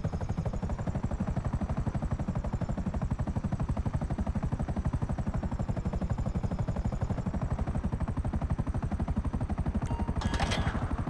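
Helicopter rotor blades thump rapidly and steadily close by.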